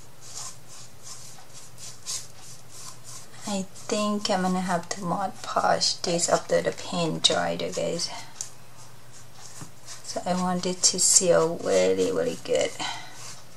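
A paintbrush swishes softly across card.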